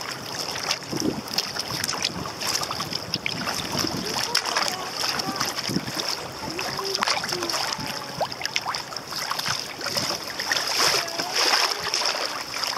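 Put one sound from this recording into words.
Choppy water slaps and splashes against a kayak hull.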